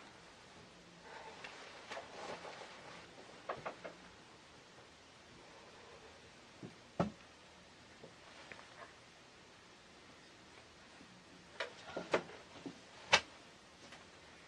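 Clothing rustles as a person shifts in a chair.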